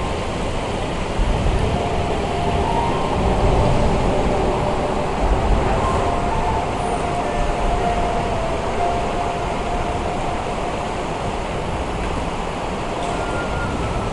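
Churning water rushes and roars loudly and steadily.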